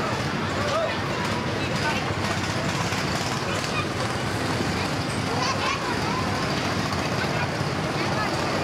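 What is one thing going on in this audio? Electric go-karts whir past on a track.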